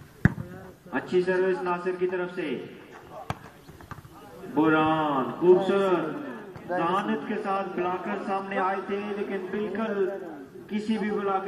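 A crowd of men cheers and shouts loudly outdoors.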